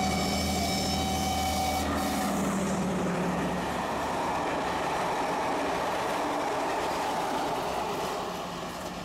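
Train wheels clatter and rumble over the rails.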